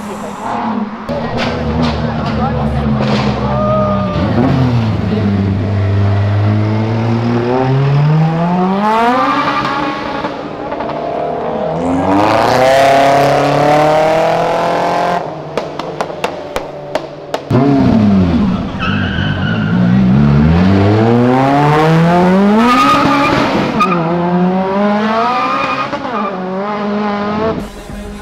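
Car engines rev loudly, rising and falling in pitch, as cars speed past.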